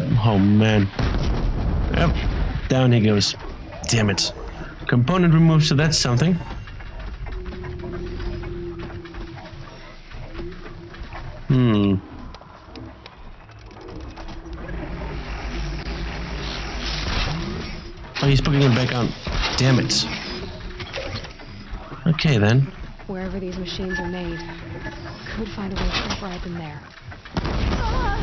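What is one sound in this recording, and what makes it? An explosion bursts with a loud boom.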